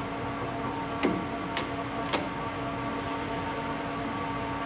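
A chuck key turns in a metal lathe chuck, clicking.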